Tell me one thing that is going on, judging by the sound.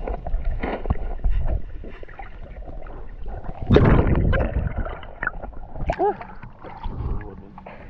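Water splashes and gurgles close by.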